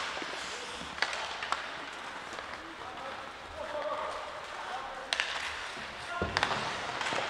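Hockey sticks clack against the puck.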